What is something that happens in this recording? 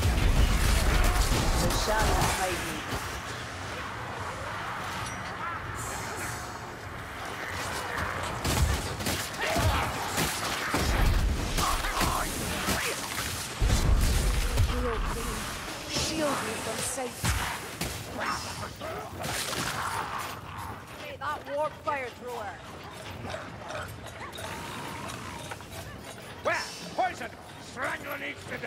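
Creatures snarl and screech.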